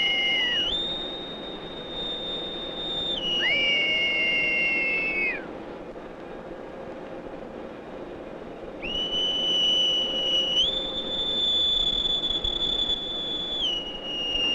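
A boatswain's pipe whistles shrilly in long, shifting notes.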